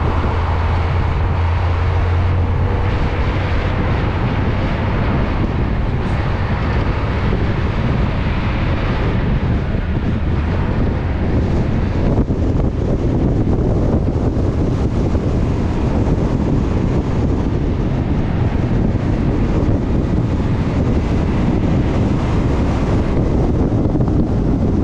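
Wind buffets loudly outdoors throughout.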